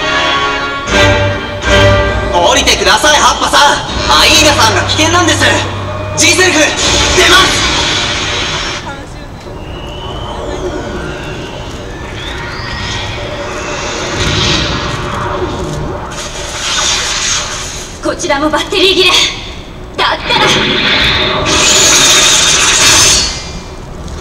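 Booming sound effects play over outdoor loudspeakers.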